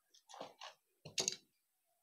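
A stapler clicks shut.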